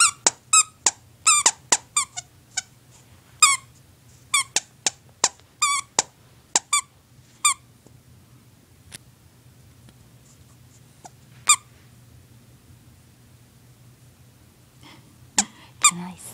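A small dog chews a squeaky plush toy, making it squeak in bursts.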